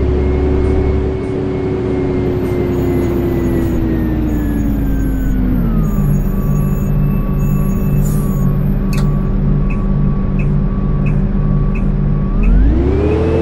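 A bus engine drones, slowing down and then revving up again.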